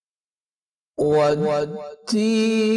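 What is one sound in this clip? A man chants melodically close to a microphone.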